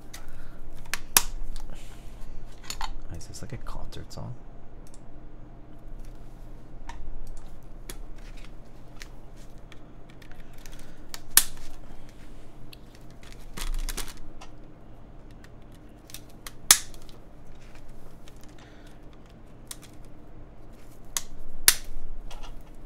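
A plastic keyboard clicks and clacks as it is handled and set down.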